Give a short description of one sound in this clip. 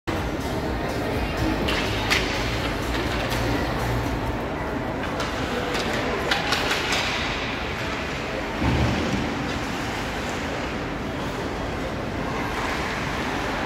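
Skates scrape and hiss on ice.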